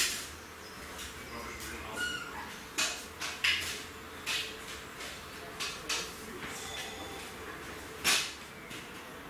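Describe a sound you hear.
A lighter clicks several times.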